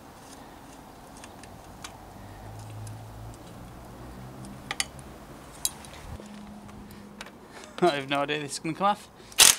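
Metal bicycle parts click and clink as they are handled.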